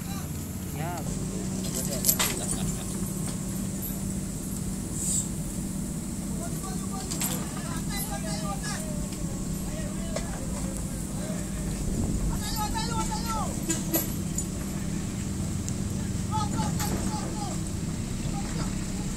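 An excavator engine rumbles steadily nearby.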